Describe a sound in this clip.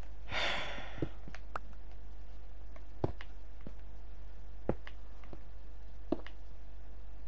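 Stone blocks knock as they are placed.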